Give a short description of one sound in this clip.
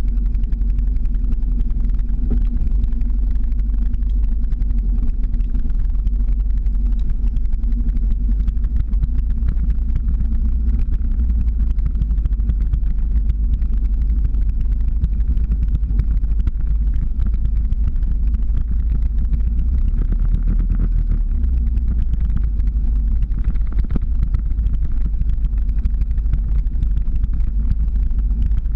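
Skateboard wheels roll and rumble steadily on asphalt.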